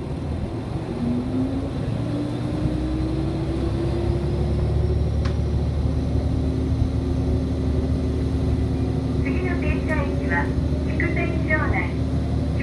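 An electric train motor whines and rises in pitch as the train speeds up.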